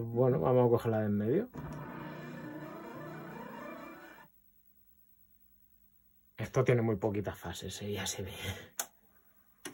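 Electronic video game music plays with bleeping sound effects.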